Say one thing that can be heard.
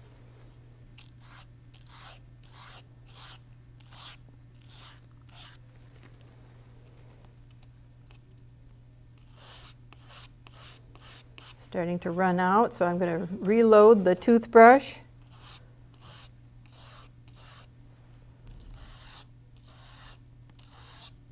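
A paintbrush brushes softly across paper in short, repeated strokes.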